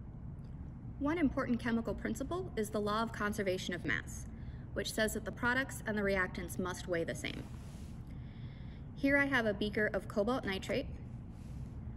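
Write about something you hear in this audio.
A woman speaks calmly and clearly, close by.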